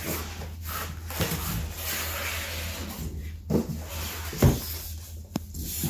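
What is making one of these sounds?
Plastic wrapping crinkles as packing is pulled from a box.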